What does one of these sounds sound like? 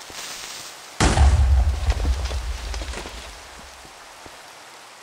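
An explosion booms with a deep rumble that fades out.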